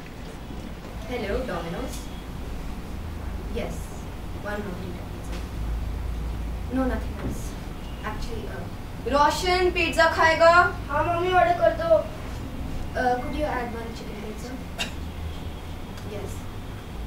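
A young woman talks on a phone.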